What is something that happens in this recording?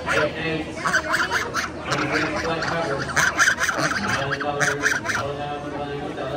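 Geese honk loudly close by.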